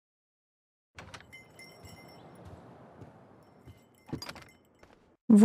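A door clicks and swings open.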